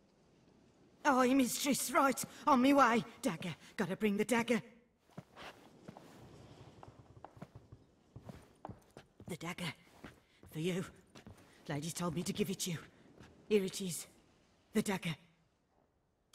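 An elderly woman speaks in a thin, eager voice.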